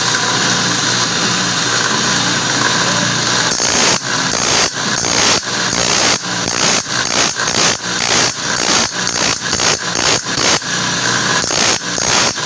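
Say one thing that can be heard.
An electric grinding wheel whirs steadily.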